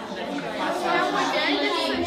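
A woman speaks calmly to children nearby.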